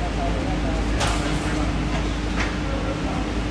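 Metal parts clack and knock.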